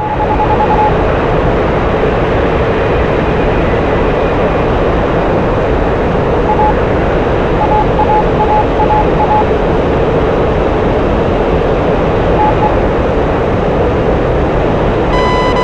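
A coaxial-rotor attack helicopter's engines and rotors roar steadily in flight, heard from inside the cockpit.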